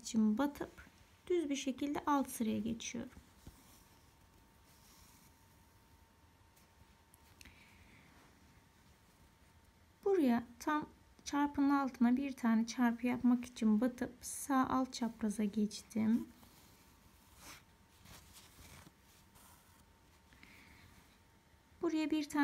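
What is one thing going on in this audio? Thread rustles softly as a needle pulls it through cloth.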